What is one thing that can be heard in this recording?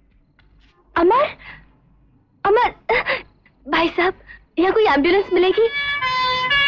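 A young woman calls out loudly and urgently, close by.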